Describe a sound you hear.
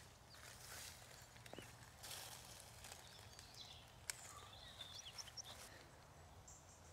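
Footsteps rustle through dry leaves.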